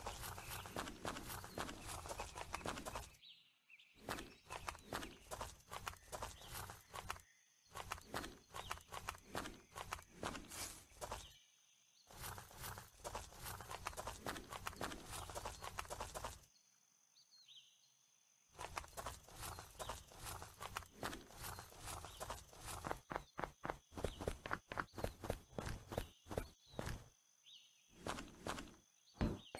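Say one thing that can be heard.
Footsteps thud quickly on dirt, in bursts with short pauses.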